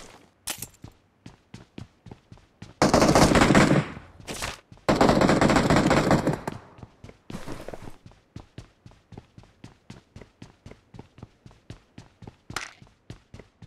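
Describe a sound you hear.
Footsteps patter quickly and evenly as a game character runs.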